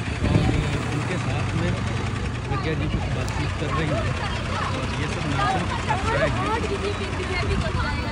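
A crowd of girls chatter and call out close by outdoors.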